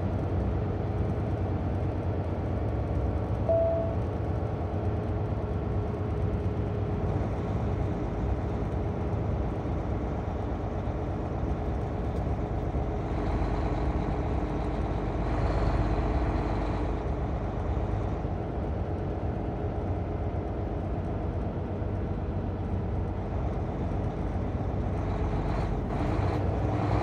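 A vehicle's engine hums steadily as it drives down a road.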